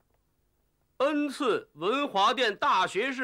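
A man calls out loudly in a high, drawn-out voice, close by.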